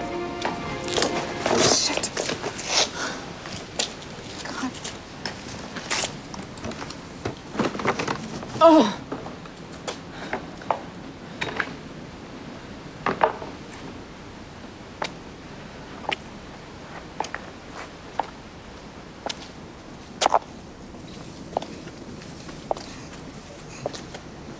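A high-heeled shoe clicks on pavement at an uneven pace.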